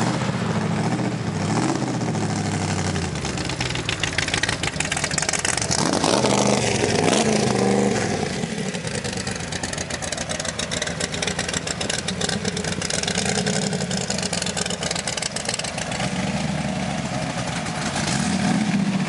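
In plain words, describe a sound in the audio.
A car engine idles with a deep, throaty rumble.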